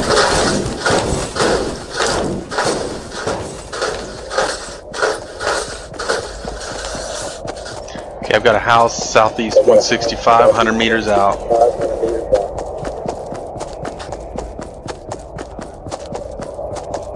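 Quick footsteps thud steadily on grass.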